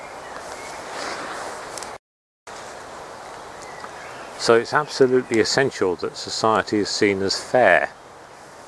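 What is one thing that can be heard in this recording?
Wind rustles through tall grass outdoors.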